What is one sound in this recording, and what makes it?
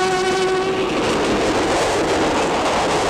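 A train rushes past with a loud roar.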